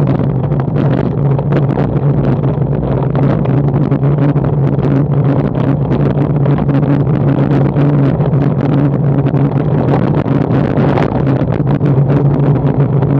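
Tyres rumble over cobblestones.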